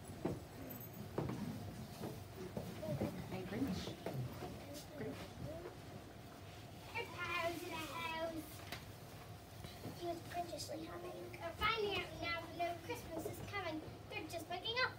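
A child speaks in a high, lively voice nearby.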